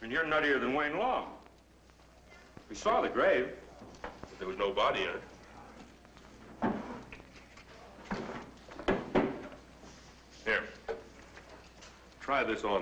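A man speaks calmly nearby in short lines.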